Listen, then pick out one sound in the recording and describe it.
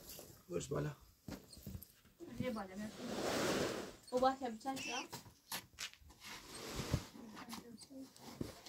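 A heavy rug is dragged and flapped across a concrete floor.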